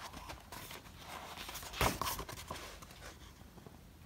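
Pages of a notebook rustle as they are handled.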